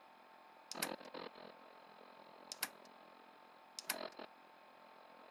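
A plastic knob clicks sharply as it is turned.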